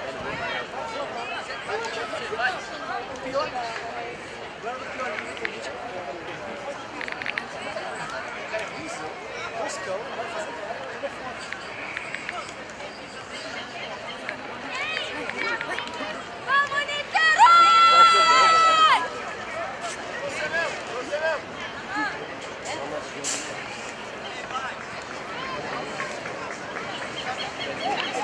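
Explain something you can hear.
Young women call out to each other across an open field.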